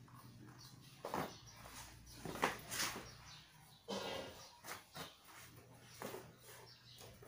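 A shoe is knocked and set down on a hard floor with soft thuds.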